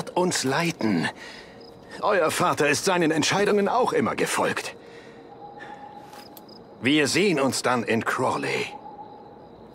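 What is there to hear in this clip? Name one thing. A man speaks in a low, serious voice, close by.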